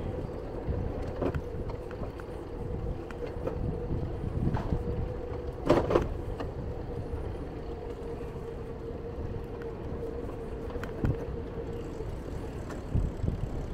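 Bicycle tyres roll steadily over a smooth paved path.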